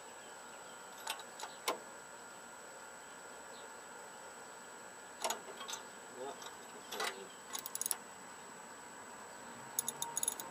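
A metal tool clinks and clicks against an engine.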